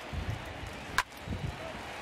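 A wooden bat cracks against a baseball.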